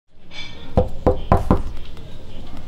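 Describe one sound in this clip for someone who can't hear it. A fist knocks several times on a door.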